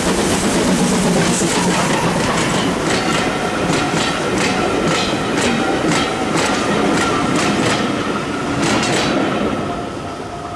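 Train coaches rumble along the track.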